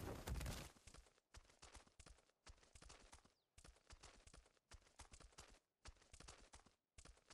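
A large animal's footsteps thud and crunch on sand in quick bursts.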